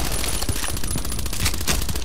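A magazine clicks as a gun is reloaded.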